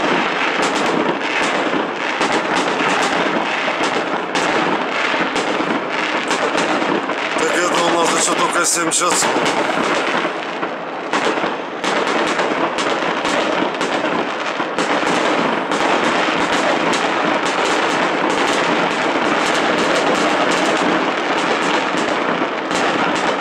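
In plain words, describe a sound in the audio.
Fireworks bang in rapid bursts.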